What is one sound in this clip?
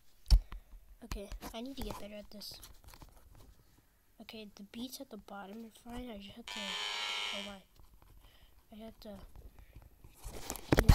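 A boy speaks close to a microphone.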